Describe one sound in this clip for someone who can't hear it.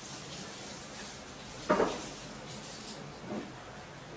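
A plate knocks down onto a wooden table.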